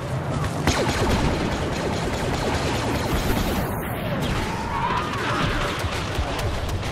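Laser bolts zip and whine through the air.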